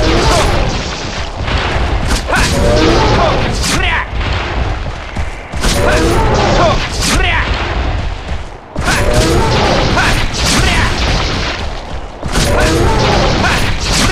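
A blade slashes into a beast's hide with wet impacts.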